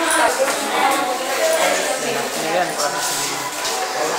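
Several adults, men and women, chat in a murmur nearby.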